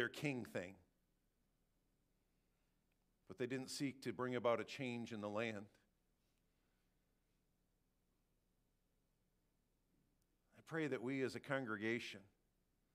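A man speaks calmly into a microphone in short phrases, with long pauses between them.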